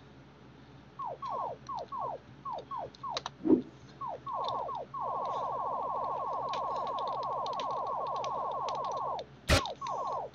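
A game menu ticks in quick runs of short beeps as it scrolls.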